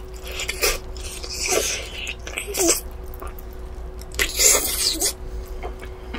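A young woman bites into crispy fried chicken with loud crunches, close to a microphone.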